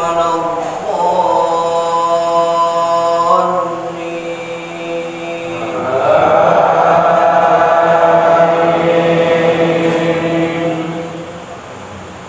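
A large crowd of men chants together in a large echoing hall.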